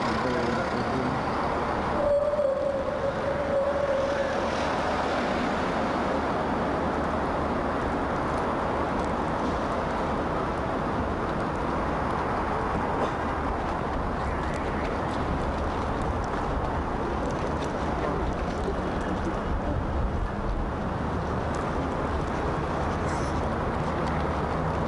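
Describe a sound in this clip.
Traffic rumbles steadily along a busy city street.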